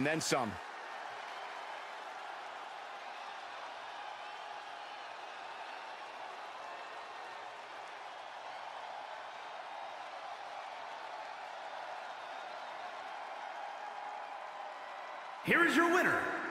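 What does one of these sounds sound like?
A large crowd murmurs and cheers steadily in a big echoing arena.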